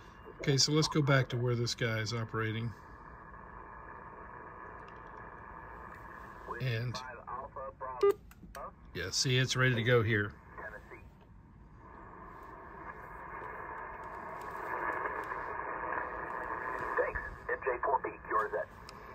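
A man's voice talks through a radio loudspeaker, thin and crackly.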